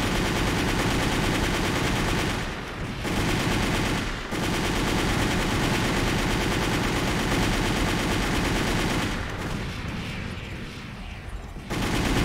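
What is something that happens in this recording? A jet thruster roars steadily.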